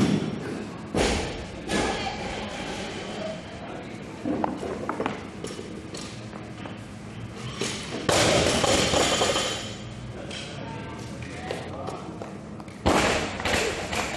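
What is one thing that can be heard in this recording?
A barbell clanks.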